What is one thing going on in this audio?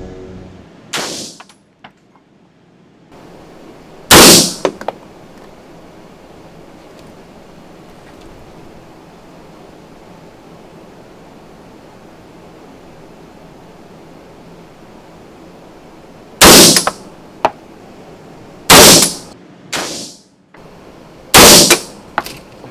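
Pistol shots bang loudly one at a time in an echoing room.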